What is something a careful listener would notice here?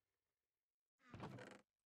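A wooden chest creaks shut.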